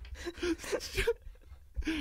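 A young man laughs softly.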